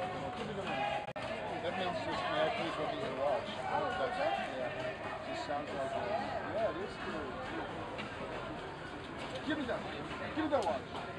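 A crowd of men and women chatter and call out outdoors.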